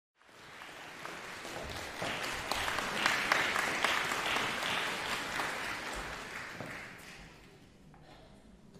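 An audience applauds in a large echoing hall.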